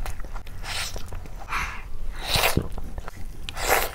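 Fingers squish and tear soft, saucy meat.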